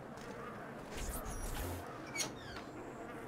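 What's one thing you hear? A wooden door creaks and knocks open.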